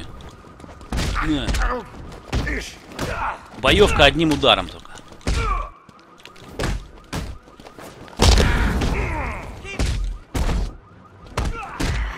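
Fists and kicks land in quick, heavy blows.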